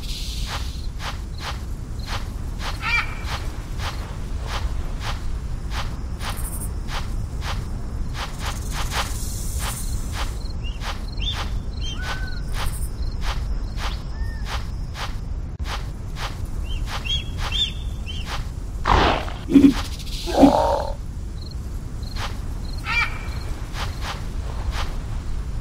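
Quick paw steps patter steadily on sand.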